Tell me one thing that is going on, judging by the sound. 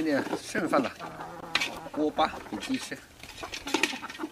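Rice scraped from a metal pot patters onto the ground.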